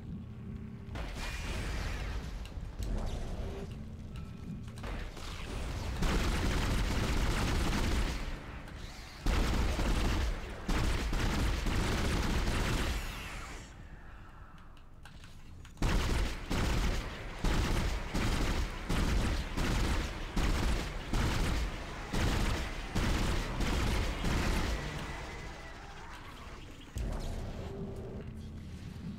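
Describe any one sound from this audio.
An energy gun fires in quick, repeated bursts.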